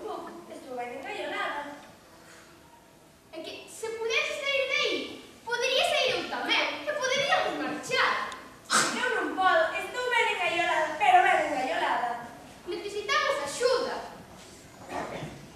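A young woman speaks with animation in a large echoing hall.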